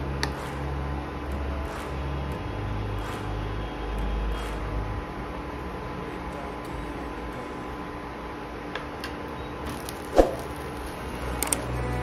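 A metal spatula and spoon scrape and tap against a pan.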